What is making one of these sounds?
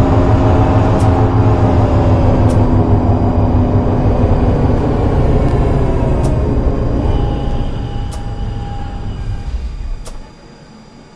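Tram wheels click over rail joints.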